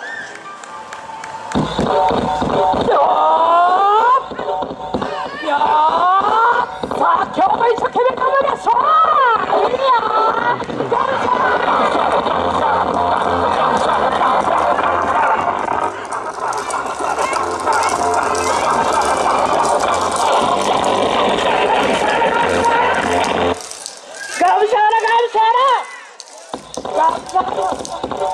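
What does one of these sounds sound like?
A group of dancers shout outdoors.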